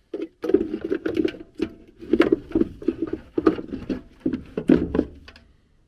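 A plastic part rattles and knocks as it is handled.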